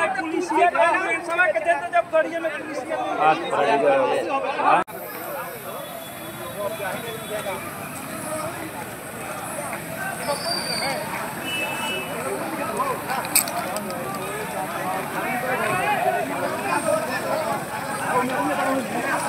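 A crowd of men shout and talk excitedly outdoors.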